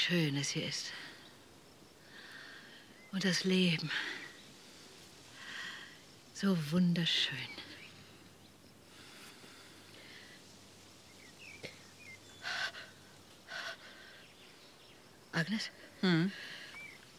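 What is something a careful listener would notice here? A middle-aged woman speaks calmly nearby, in short phrases with pauses.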